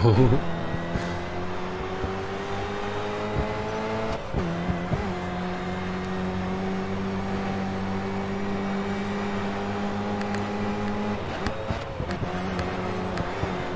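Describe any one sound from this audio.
A racing car engine roars steadily at high revs, dropping briefly as gears change.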